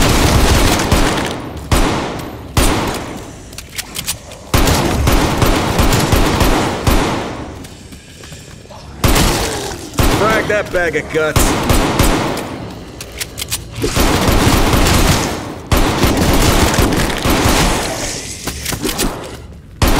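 Gunshots fire in quick bursts, echoing loudly.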